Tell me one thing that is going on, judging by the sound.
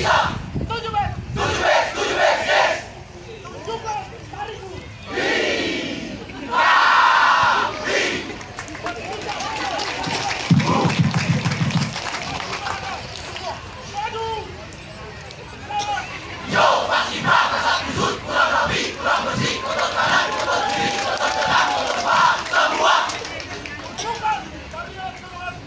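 A man shouts marching commands outdoors.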